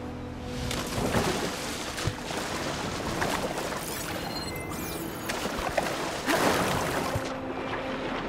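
A swimmer splashes through water.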